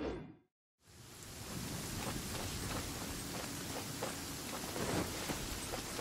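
Footsteps patter through grass.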